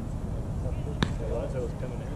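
A baseball smacks into a catcher's glove.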